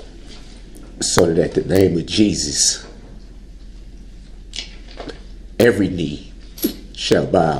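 A man speaks emotionally in short bursts through a microphone.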